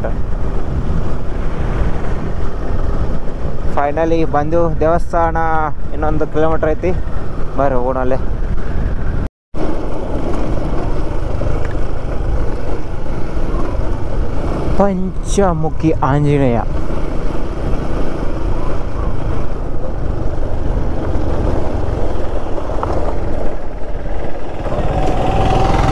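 A motorcycle engine hums steadily as it rides along a road.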